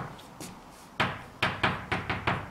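Chalk taps and scrapes against a blackboard.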